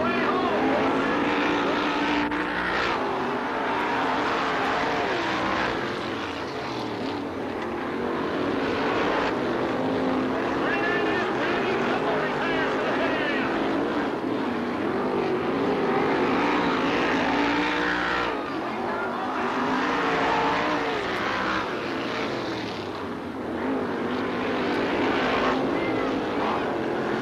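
Sprint car engines roar loudly as the cars race past.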